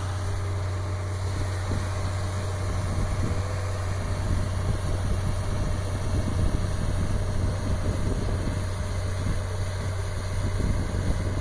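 Snow blasts out of a blower in a constant rushing roar.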